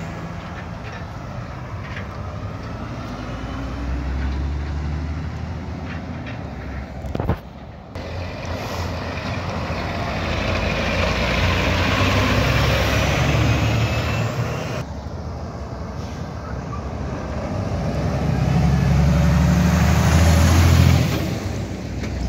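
Heavy truck engines rumble loudly as trucks pass close by, one after another.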